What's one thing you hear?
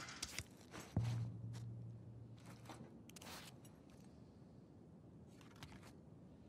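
A paper card rustles as a hand picks it up.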